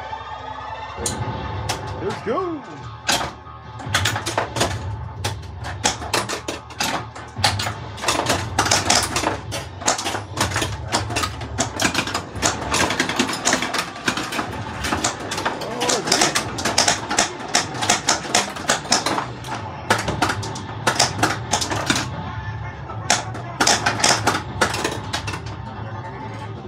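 A pinball machine clatters with rapid knocks and dings as the ball strikes targets.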